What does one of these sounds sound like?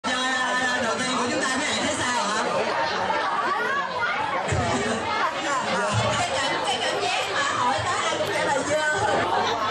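A young woman sings into a microphone over a loudspeaker.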